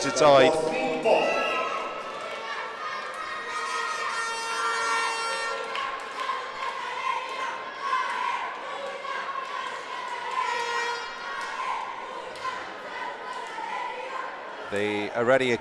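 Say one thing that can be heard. A crowd murmurs and cheers in a large echoing hall.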